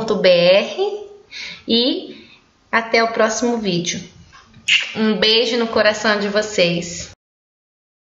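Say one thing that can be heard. A woman speaks warmly and cheerfully, close to a microphone.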